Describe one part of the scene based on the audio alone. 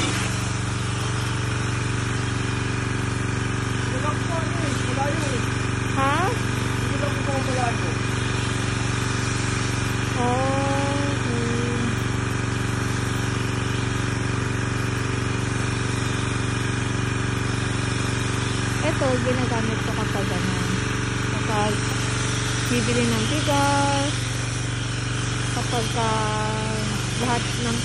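A pressure washer motor hums steadily.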